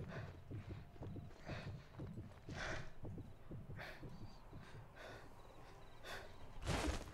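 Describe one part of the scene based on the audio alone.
Footsteps rustle through dense leafy bushes.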